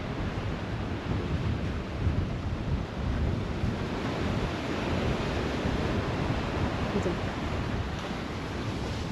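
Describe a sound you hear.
Waves break and wash onto the shore in the distance.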